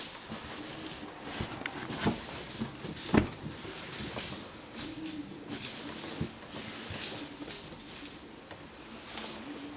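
Foam cushions thump and rustle as they are pushed into place.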